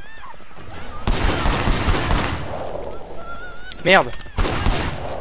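A pistol fires in quick shots.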